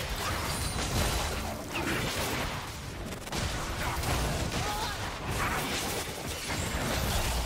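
Magic blasts and hits crackle and boom in a video game battle.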